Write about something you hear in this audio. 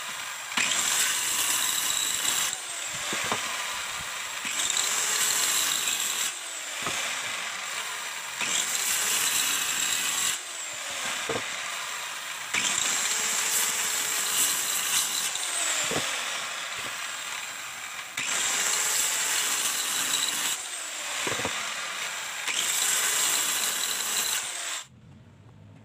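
A circular saw whines loudly as it cuts through wood in short bursts.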